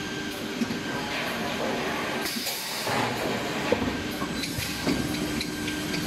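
Machinery clatters with scattered knocks.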